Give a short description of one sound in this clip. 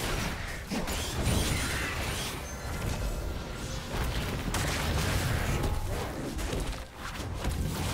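Fantasy game combat effects whoosh, crackle and thump throughout.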